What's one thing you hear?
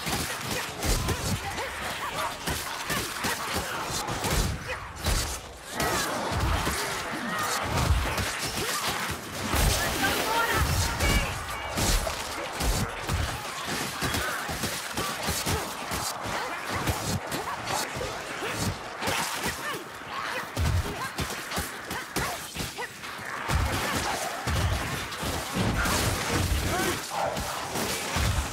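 Weapons strike and hack into creatures in quick, repeated blows.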